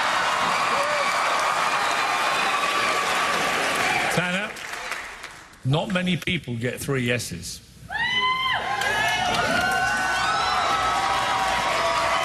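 A large audience cheers and applauds loudly.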